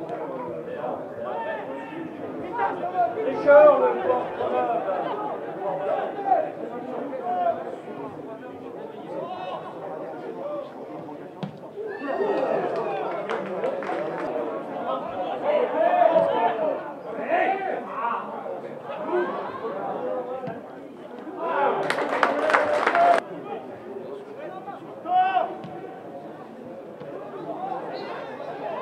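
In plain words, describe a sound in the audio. Young men shout to each other across an open sports field.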